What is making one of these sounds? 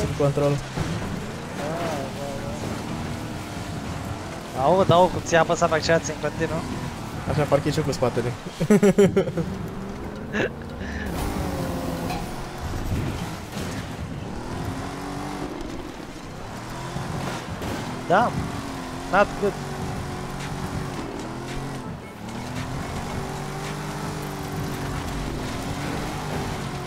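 A car engine revs and drones steadily.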